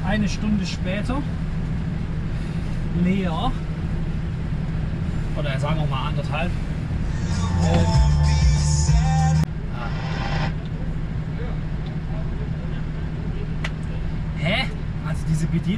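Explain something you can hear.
A truck engine idles with a steady low hum.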